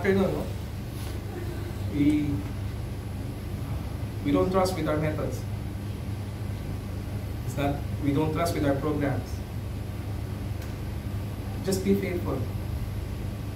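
A man speaks calmly, close by, with pauses between phrases.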